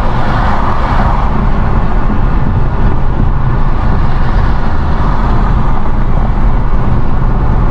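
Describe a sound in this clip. Road noise rumbles steadily from inside a car moving at highway speed.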